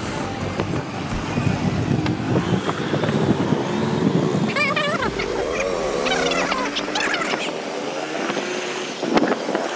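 Other motorbikes drive past on the street.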